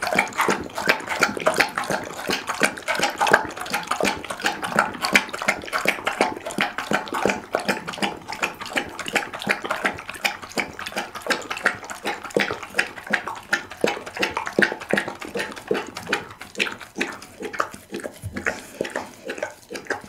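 A dog laps and slurps wetly from a bowl, close up.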